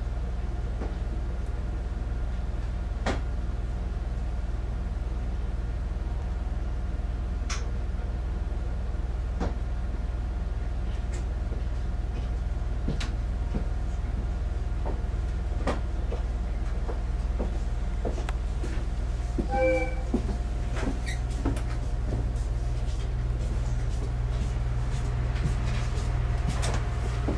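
A train's engine hums low and steady.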